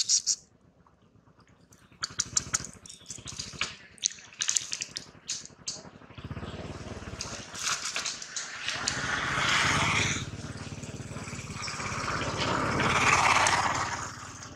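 A baby monkey sucks and slurps from a bottle.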